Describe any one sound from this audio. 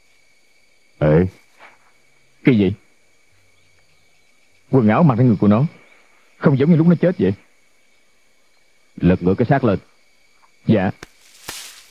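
A man speaks tensely in short bursts, close by.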